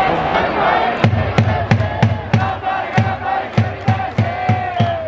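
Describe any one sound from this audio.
A stadium crowd chants and claps in a steady rhythm.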